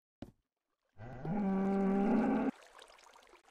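A cow moos loudly.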